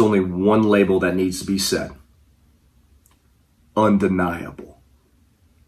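A man speaks forcefully into a microphone over an online call.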